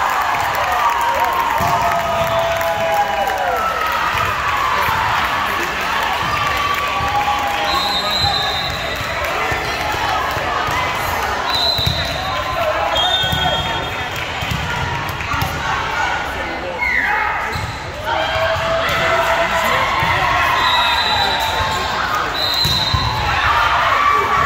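Young women's voices chatter and call out in a large echoing gym.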